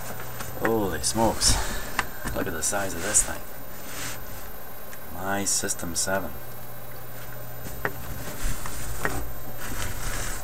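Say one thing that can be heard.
A large cardboard box is handled and scraped across carpet.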